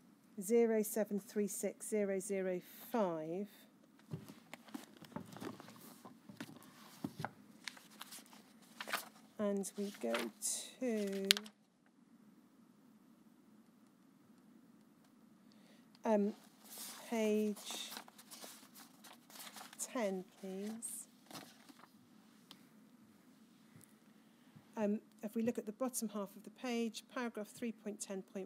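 A woman speaks calmly into a microphone, reading out in pauses.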